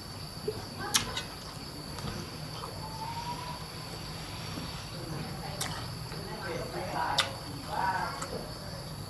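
A spoon clinks against a metal plate.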